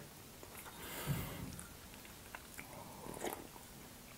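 A young woman sips a drink from a mug.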